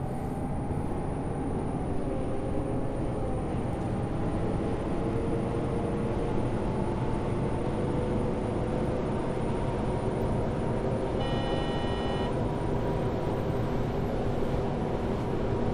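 Tyres roll over a road surface.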